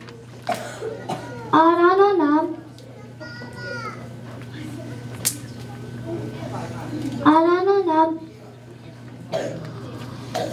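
A young boy speaks loudly through a microphone in an echoing hall.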